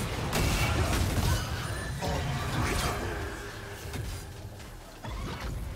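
Game spell effects whoosh, crackle and clash in a busy battle.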